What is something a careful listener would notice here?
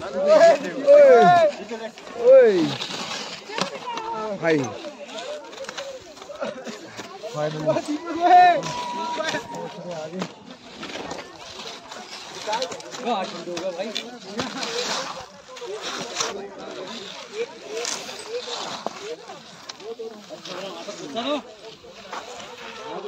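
Several men talk and call out loudly close by, outdoors.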